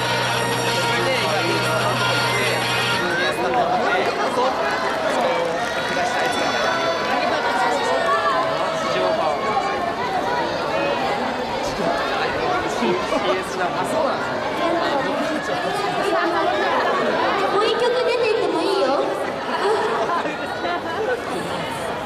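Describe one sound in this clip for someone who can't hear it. A crowd chatters and murmurs.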